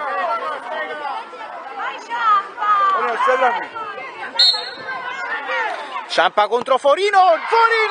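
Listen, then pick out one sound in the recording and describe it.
Children shout and chatter excitedly outdoors.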